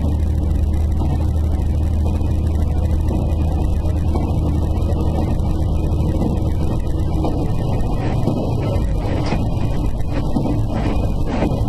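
A train engine hums steadily as the train rolls along the track.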